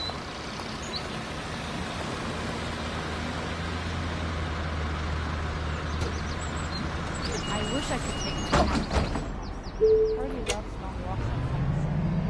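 A bus engine hums steadily at idle.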